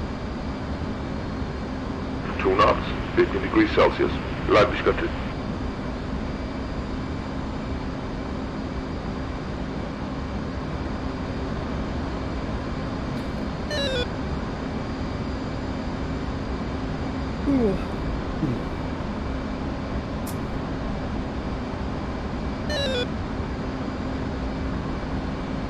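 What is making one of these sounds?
A jet engine drones steadily.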